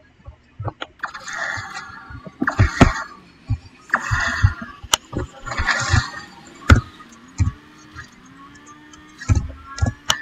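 Racing car engines roar and whoosh.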